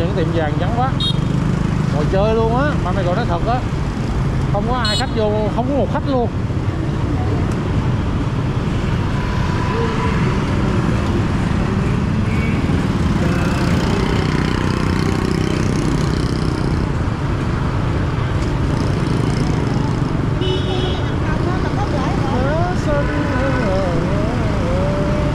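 Other motorbikes buzz past in busy street traffic.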